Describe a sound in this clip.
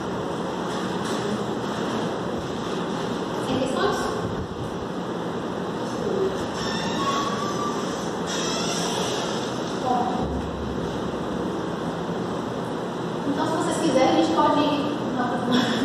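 A young woman speaks calmly from across a room.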